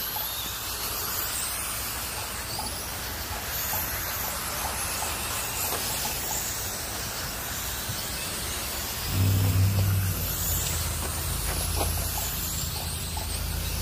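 Radio-controlled cars race around a dirt track with high whining motors.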